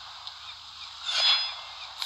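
A whoosh sweeps past.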